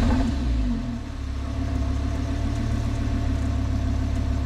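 A sports car engine idles with a low, steady rumble.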